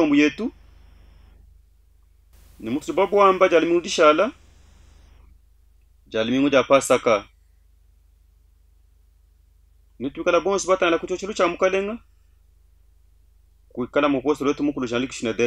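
A man speaks slowly and with feeling, close to a microphone, in short phrases with pauses.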